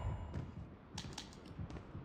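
A gun's magazine clicks as it is reloaded.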